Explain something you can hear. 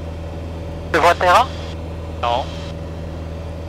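A man speaks briefly through a headset intercom.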